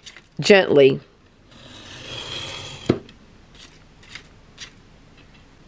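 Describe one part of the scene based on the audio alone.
A craft knife scrapes along a metal ruler, slicing through paper.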